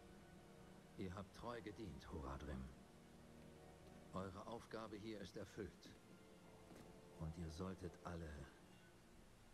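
A man speaks slowly in a deep, grave voice.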